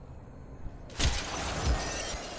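A gunshot bangs sharply and rings out.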